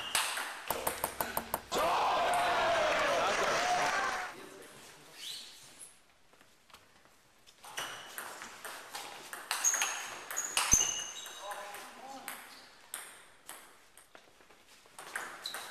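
A table tennis ball clicks quickly back and forth off paddles and the table in an echoing hall.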